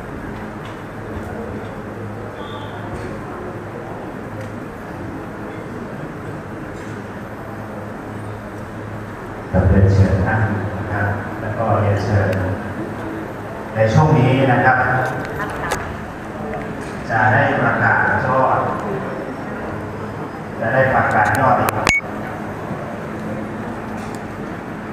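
A crowd murmurs and shuffles in a large echoing hall.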